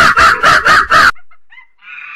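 A chimpanzee screams loudly in short, harsh bursts.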